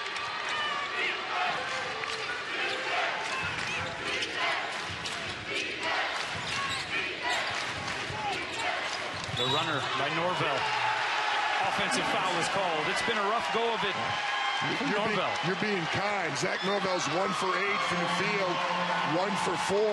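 A large indoor crowd murmurs and shouts in an echoing arena.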